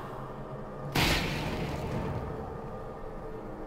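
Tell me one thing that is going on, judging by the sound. A loud explosion booms and rumbles away.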